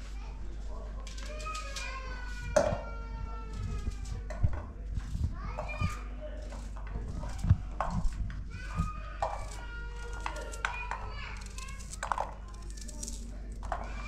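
Dry onion skin crackles as it is peeled by hand.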